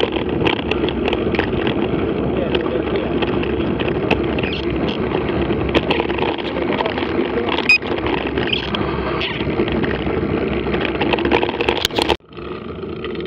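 Bicycle tyres crunch over a gravel track.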